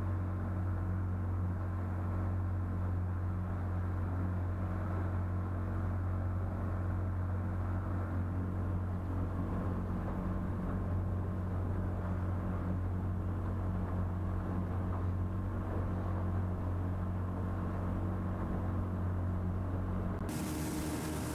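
Water splashes and hisses in a boat's wake.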